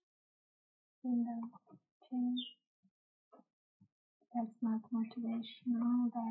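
A young woman talks calmly into a microphone, close by.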